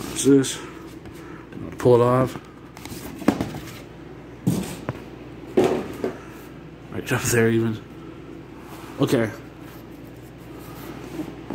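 A cardboard box rustles and knocks as it is handled.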